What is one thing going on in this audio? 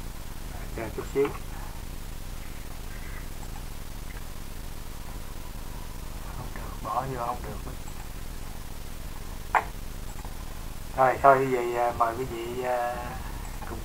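An elderly man speaks calmly in short bursts, heard through a computer microphone.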